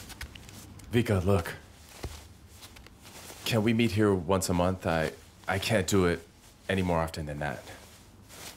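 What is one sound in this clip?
A young man speaks quietly and calmly, close by.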